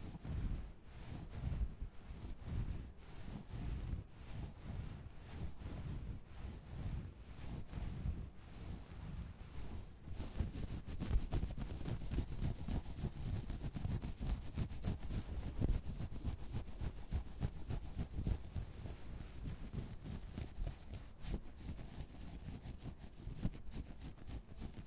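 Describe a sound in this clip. Fingertips scratch and rub soft fabric close up, with soft crackling rustles.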